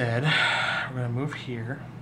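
A small plastic game figure is set down on a tabletop.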